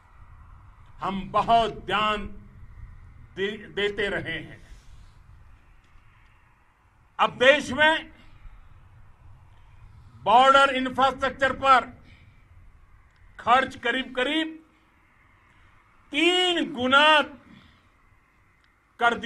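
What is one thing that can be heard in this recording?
An elderly man speaks forcefully into a microphone outdoors, in short bursts with pauses.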